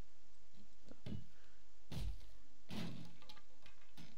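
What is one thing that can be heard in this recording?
A club strikes a wooden crate with dull knocks.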